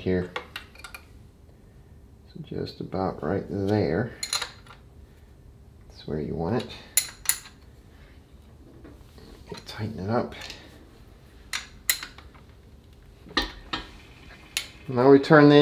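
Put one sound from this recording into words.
A wrench clicks and clinks against metal parts.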